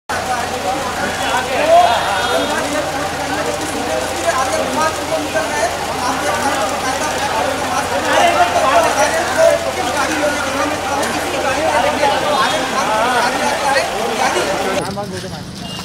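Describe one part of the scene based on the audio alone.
A crowd of men talks and calls out loudly close by, outdoors.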